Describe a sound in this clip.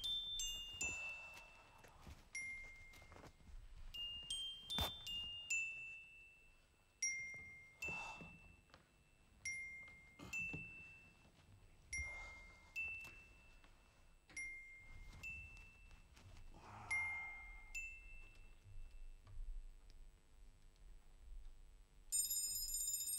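Sharp electronic beeps and tones play in short bursts.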